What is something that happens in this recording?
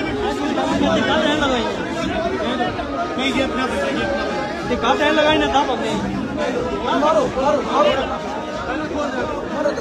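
Several men argue loudly and heatedly, close by.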